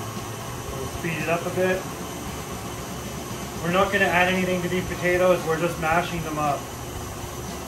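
A man speaks calmly and closely.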